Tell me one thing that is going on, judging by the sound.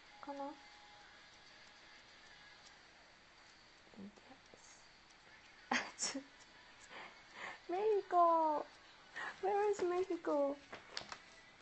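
A woman speaks softly and with animation close to a microphone.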